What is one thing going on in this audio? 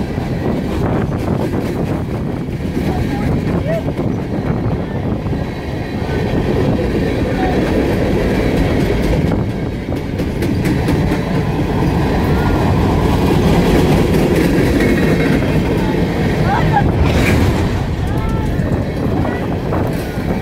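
A long freight train rumbles and clatters steadily past on the rails.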